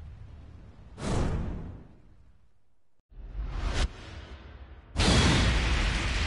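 A sharp whoosh and burst sounds as a flash flares.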